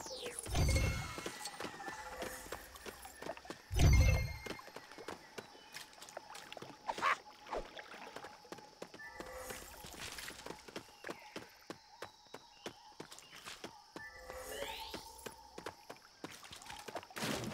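Footsteps patter on soft ground.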